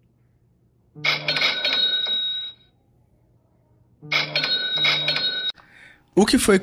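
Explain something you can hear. A phone plays a short notification chime, twice.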